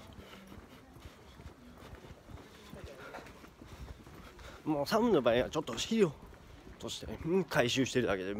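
A young man speaks close to the microphone, quietly at first and then with animation.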